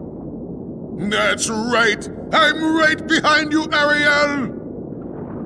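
A man speaks with a lively, high voice.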